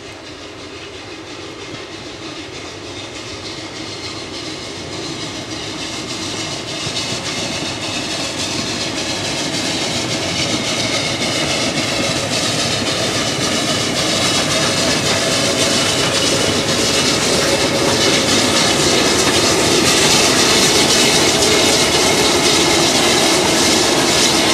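A steam locomotive chuffs closer, growing steadily louder.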